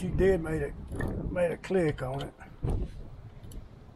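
A wrench clinks against metal parts of an engine.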